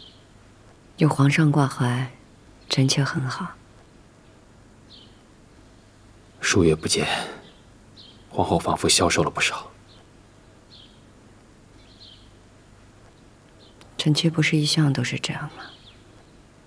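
A woman speaks calmly and softly close by.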